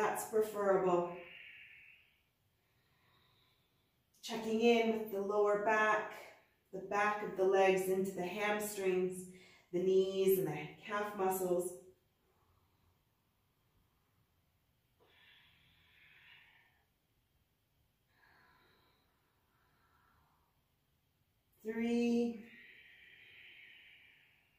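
A woman breathes out audibly.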